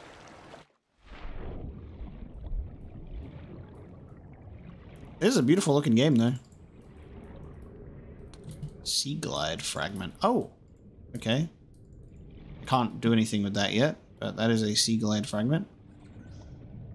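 Water rumbles and bubbles softly underwater.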